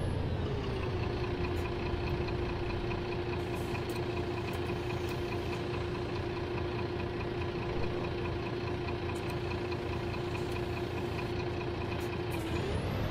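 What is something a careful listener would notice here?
A diesel city bus idles at a stop.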